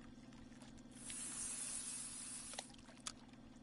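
A fishing line whizzes out as a lure is cast.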